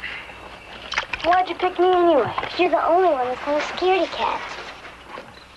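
A young girl cries out in a high, wavering voice nearby.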